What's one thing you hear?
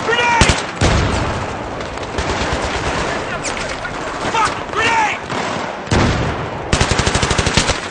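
Gunfire and blasts boom in the distance.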